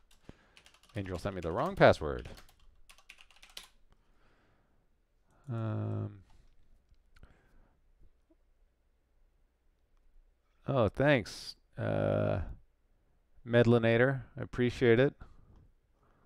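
A man speaks calmly and casually into a close headset microphone.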